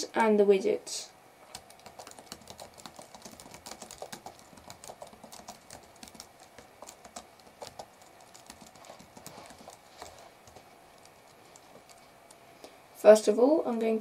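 Computer keys click in quick, light taps.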